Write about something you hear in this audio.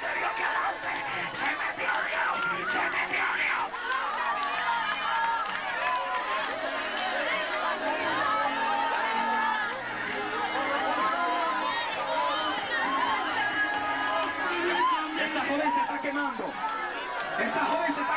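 A large crowd of men and women sings loudly together.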